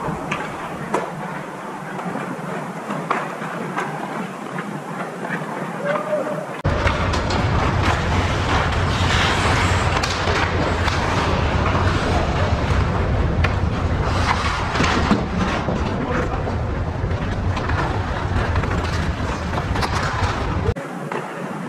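Ice hockey skates carve and scrape across ice in a large echoing rink.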